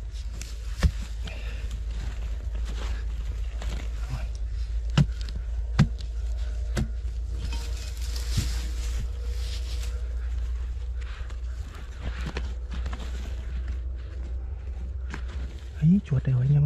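Dry earth crumbles and rustles as a gloved hand scoops it out.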